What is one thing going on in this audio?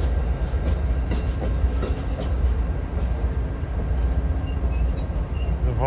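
A passenger train rumbles slowly past on the tracks.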